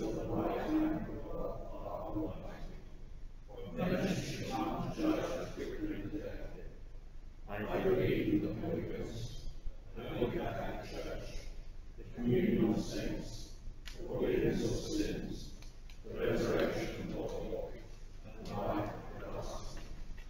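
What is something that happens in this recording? A choir sings together in a large echoing hall.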